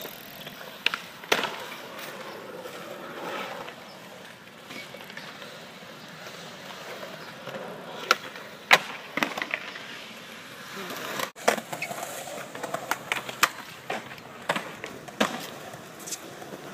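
Skateboard wheels roll and rumble over concrete outdoors.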